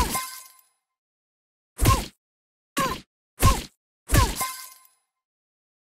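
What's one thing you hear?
Short cartoonish game sound effects play in quick bursts, each with a falling swoop.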